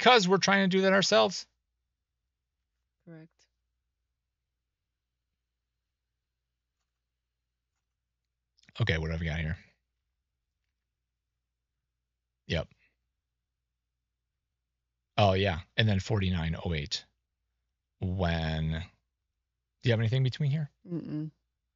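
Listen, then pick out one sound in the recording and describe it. A man talks calmly into a microphone, in short bursts with pauses.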